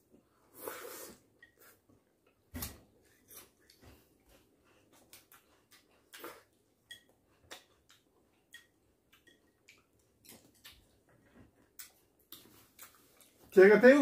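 Men chew food softly close by.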